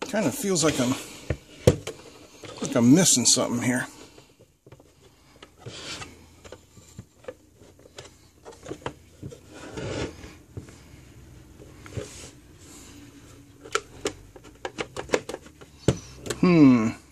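A hard plastic casing knocks and clicks as it is handled.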